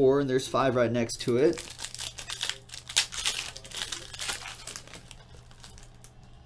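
Foil card wrappers crinkle and tear as hands open a pack.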